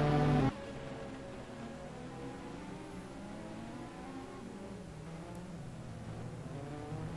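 Racing car engines drone and whine in the distance.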